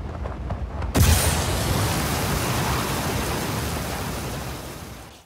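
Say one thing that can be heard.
Water churns and sloshes, slowly fading.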